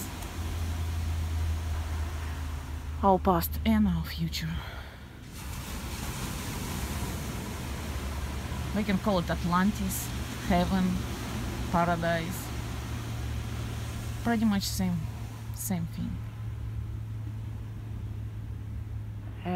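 Small waves wash steadily onto a beach nearby.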